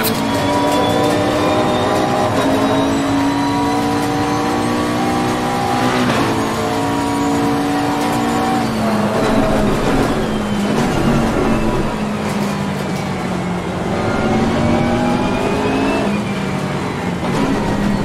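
A racing car engine roars through loudspeakers, rising in pitch and dropping sharply with each gear change.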